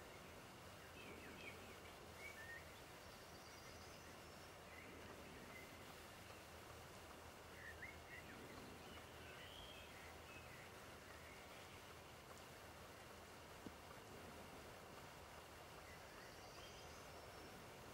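River water flows and laps.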